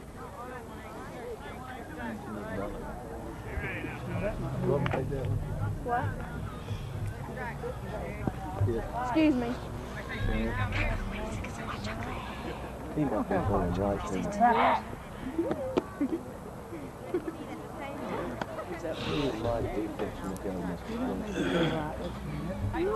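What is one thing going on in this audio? Men chat casually nearby outdoors.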